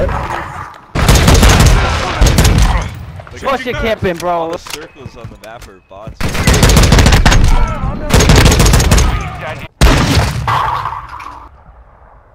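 Rapid bursts of rifle fire crack loudly, close by.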